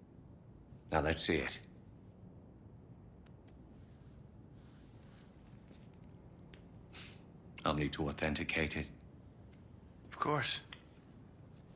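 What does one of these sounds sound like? A second man answers in a low, calm voice.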